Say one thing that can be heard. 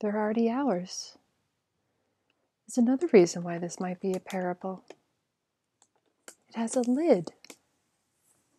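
A young woman speaks calmly, telling a story close by in a quiet room.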